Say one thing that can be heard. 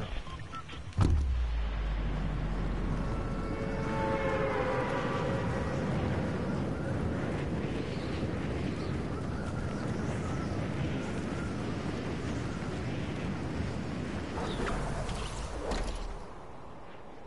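Wind rushes loudly and steadily.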